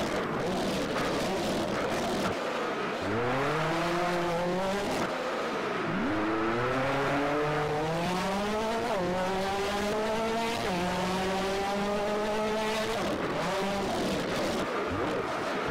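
A rally car engine revs up and down through the gears as the car races.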